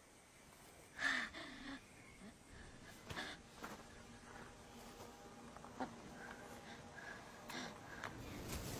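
A young woman gasps and pants heavily.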